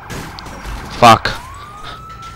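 A car crashes into a metal pole with a loud bang.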